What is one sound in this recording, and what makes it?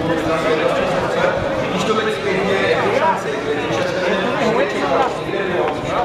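A man speaks into a handheld microphone, asking questions.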